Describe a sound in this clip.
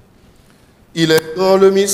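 A man sings through a microphone.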